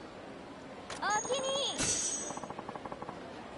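A young woman speaks calmly and politely.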